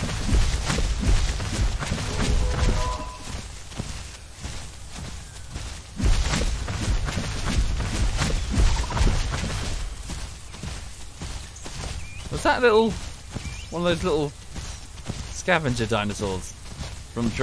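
Heavy footsteps thud on grass.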